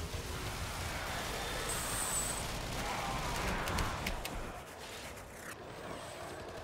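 Blades slash and clash in a fast game fight.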